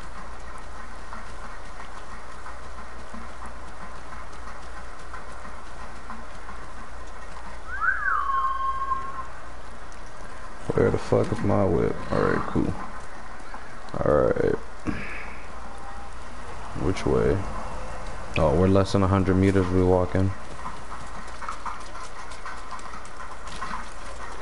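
Wind blows steadily through trees outdoors.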